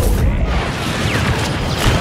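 Blaster shots zap.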